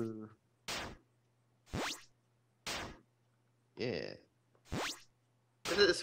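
Short chiptune hit sounds from a retro video game blip in quick succession.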